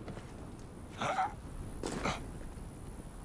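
A heavy thud sounds as someone drops onto a stone floor.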